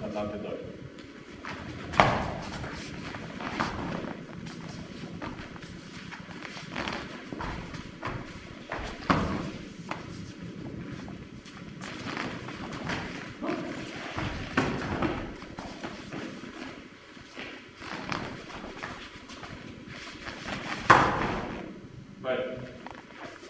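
Bare feet shuffle and pad across a mat.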